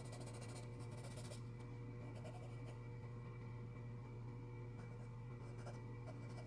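A pencil scratches softly on paper in short strokes.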